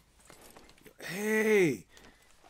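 A horse whinnies nearby.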